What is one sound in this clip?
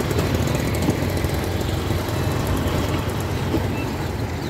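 An auto-rickshaw engine idles close by with a low rattling putter.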